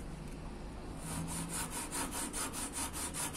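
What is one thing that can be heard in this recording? A sanding sponge scrapes quickly back and forth over metal.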